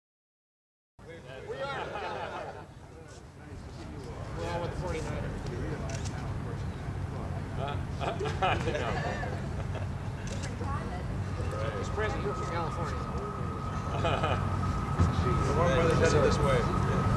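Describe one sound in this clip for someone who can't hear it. Men talk calmly nearby outdoors.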